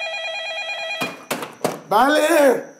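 A telephone handset clatters as it is picked up.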